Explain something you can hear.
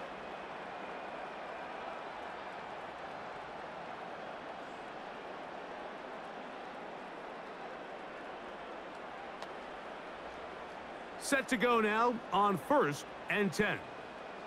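A stadium crowd roars and murmurs steadily.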